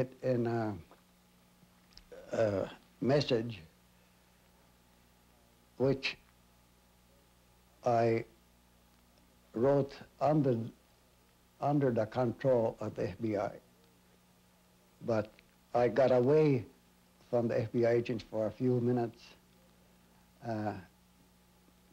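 An elderly man speaks slowly and calmly, close by, with long pauses.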